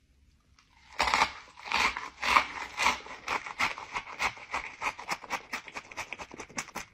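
A young man crunches loudly on food.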